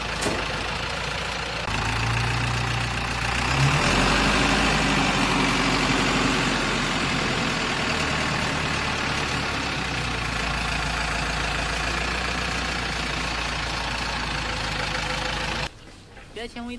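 A forklift engine runs loudly and steadily close by.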